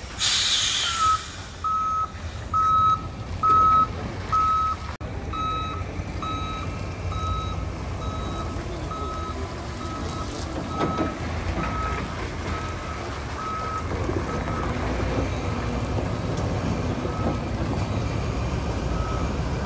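A reversing alarm beeps at an even pace.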